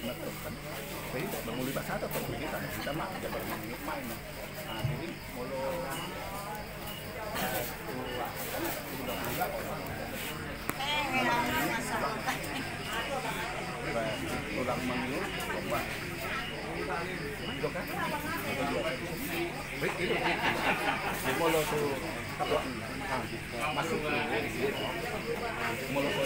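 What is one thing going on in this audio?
A crowd of men and women chatters throughout, outdoors.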